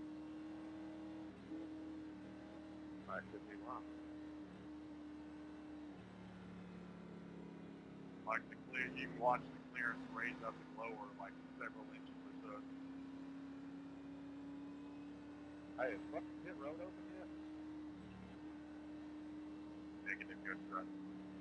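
A race car engine drones steadily at low speed.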